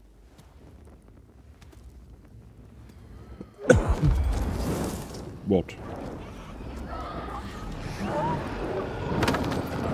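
A torch flame roars and crackles.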